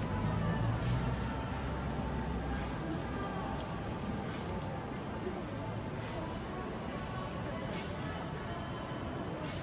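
Traffic hums steadily along a city street.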